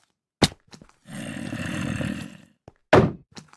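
A zombie groans nearby.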